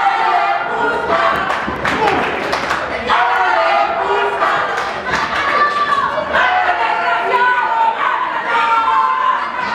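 A crowd shouts and cheers in an echoing hall.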